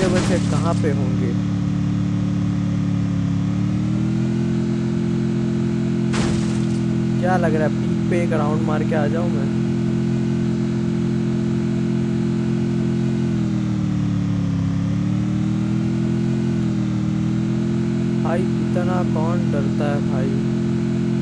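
A vehicle engine drones steadily, its pitch shifting slightly as the vehicle drives over bumpy ground.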